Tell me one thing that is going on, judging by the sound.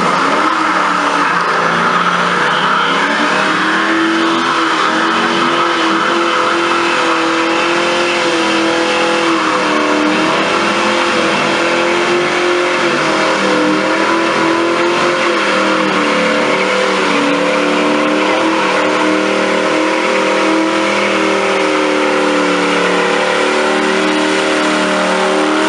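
Car tyres screech as they spin on asphalt.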